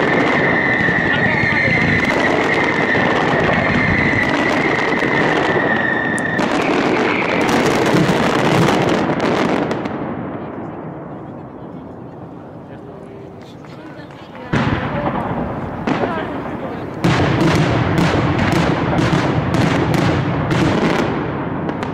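Firecrackers explode overhead in rapid, loud bangs.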